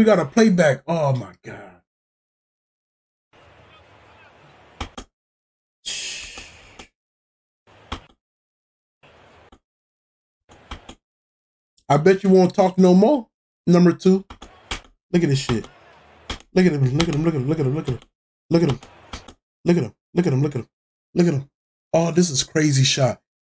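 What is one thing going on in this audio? A man talks with animation into a microphone, close by.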